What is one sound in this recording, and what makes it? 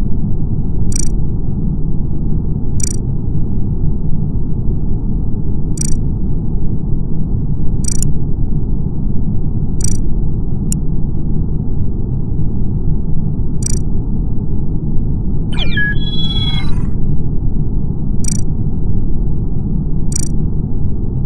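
Short game menu clicks sound every few seconds.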